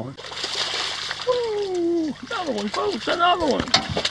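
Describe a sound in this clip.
A fish thrashes and splashes loudly at the water's surface.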